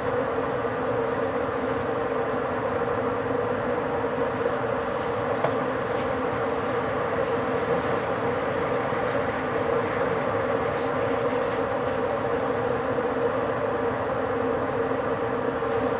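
A train rumbles steadily along the rails with a constant motor hum.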